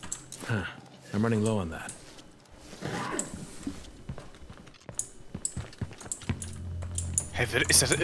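Footsteps thud slowly across a floor.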